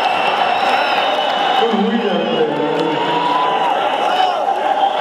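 A man sings through a microphone, heard over loudspeakers.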